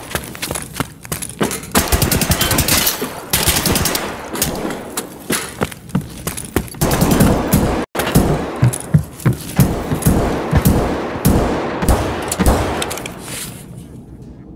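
Footsteps thud and scrape across hard floors.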